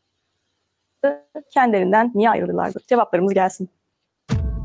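A young woman speaks calmly through a computer speaker.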